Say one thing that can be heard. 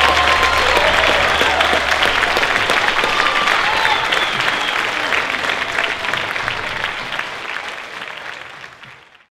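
A large audience applauds loudly in an echoing hall, then the applause fades away.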